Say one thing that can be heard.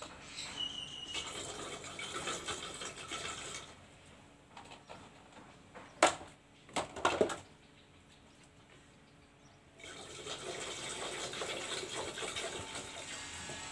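Liquid pours and splashes into a jar.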